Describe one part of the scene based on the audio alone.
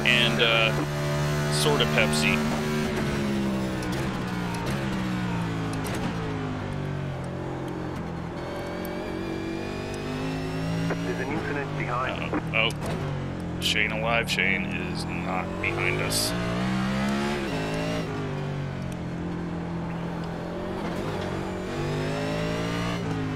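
A race car engine roars loudly, rising and falling in pitch as it shifts gears.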